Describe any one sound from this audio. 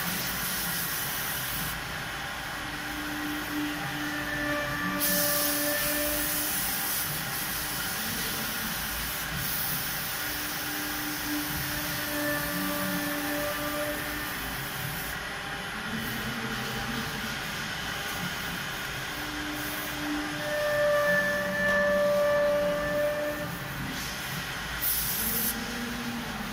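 A router machine whines steadily as it cuts wood.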